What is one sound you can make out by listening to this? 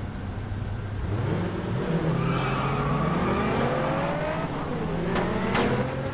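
A car engine revs up hard.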